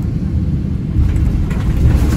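Aircraft wheels touch down and rumble on a runway.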